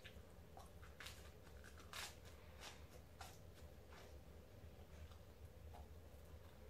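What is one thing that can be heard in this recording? A young man bites and chews a crunchy snack close to the microphone.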